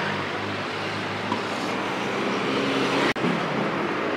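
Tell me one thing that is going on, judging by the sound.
A car drives past close by.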